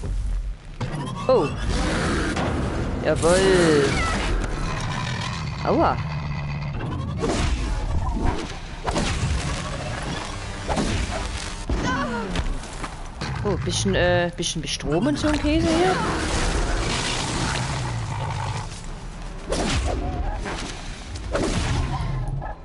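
Blasts and impacts boom sharply, again and again.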